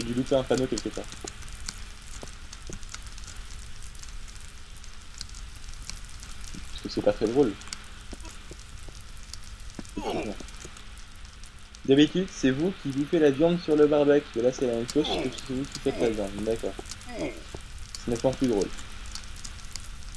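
Fire crackles steadily.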